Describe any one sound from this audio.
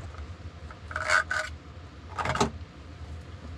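A man handles camping gear with short rustles and knocks.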